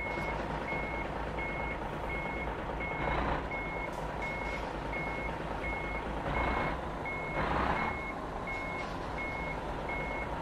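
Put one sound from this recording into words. A truck engine rumbles low at idle.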